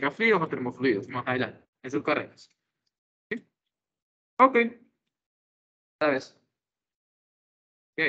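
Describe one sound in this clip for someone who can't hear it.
A young man speaks calmly through a microphone over an online call, in short bursts with pauses.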